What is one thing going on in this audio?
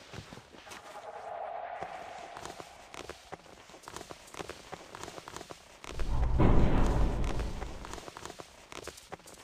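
Footsteps and hands scrape and knock on rough stone while someone climbs.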